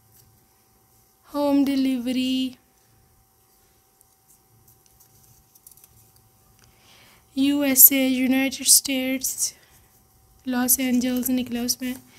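Small paper notes rustle and crinkle between fingers.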